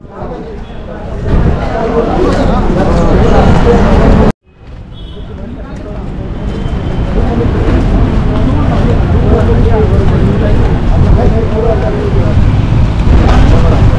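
Footsteps scuff on paving outdoors.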